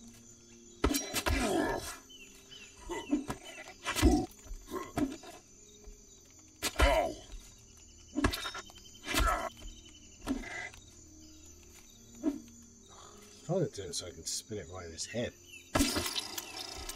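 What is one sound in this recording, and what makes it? Heavy weapon blows thud into a creature again and again.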